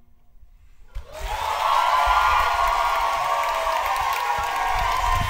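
An audience applauds and cheers loudly in a hall.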